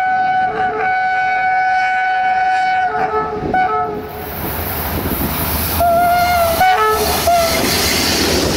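A diesel-electric locomotive sounds its two-tone horn.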